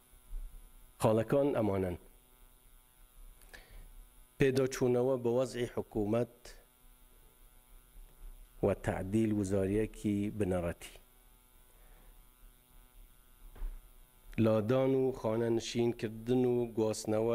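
A middle-aged man speaks slowly and formally into a microphone, pausing between phrases.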